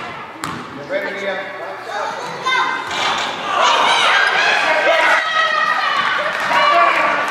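Young girls shout and call out excitedly in a large echoing gym.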